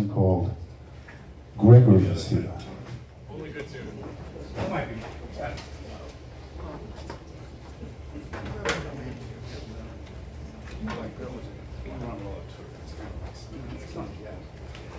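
A band plays live music in a small room.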